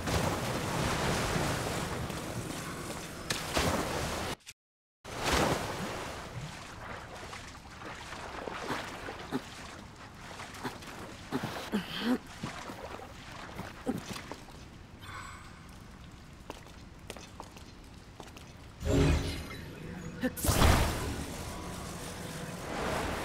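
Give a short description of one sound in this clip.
Molten lava bubbles and hisses.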